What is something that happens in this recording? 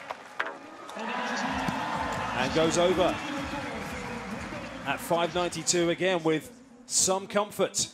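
A large crowd cheers and applauds outdoors.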